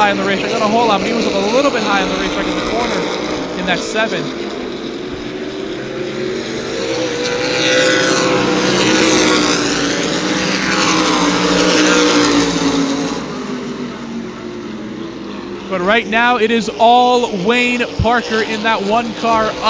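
Race car engines roar loudly as cars speed around an oval track.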